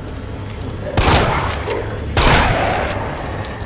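A shotgun fires with loud blasts.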